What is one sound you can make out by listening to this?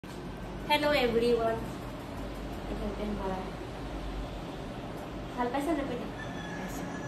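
A young woman speaks close by in a casual, lively tone.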